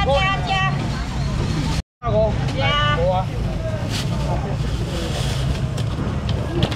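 A busy crowd murmurs and chatters outdoors.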